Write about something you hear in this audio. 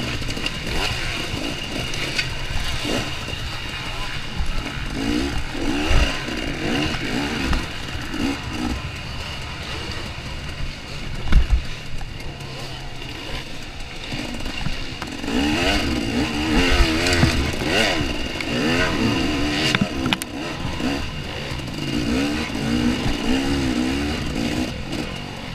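Other motorbike engines buzz nearby.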